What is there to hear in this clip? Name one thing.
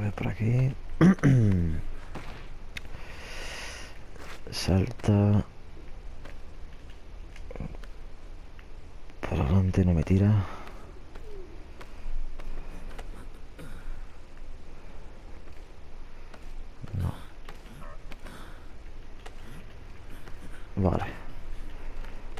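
A man grunts and breathes hard with effort nearby.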